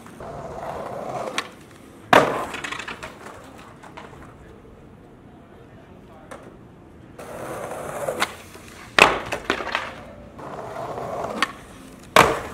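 Skateboard wheels roll and rumble on smooth stone.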